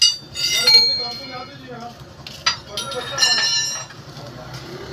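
Metal parts clank and ring close by.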